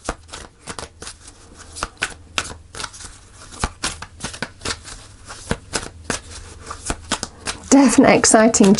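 Playing cards riffle and slap as they are shuffled by hand.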